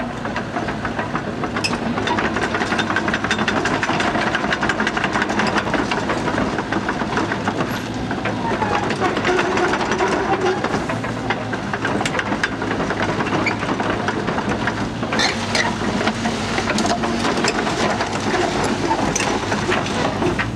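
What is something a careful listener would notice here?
A diesel engine of a small excavator runs steadily nearby.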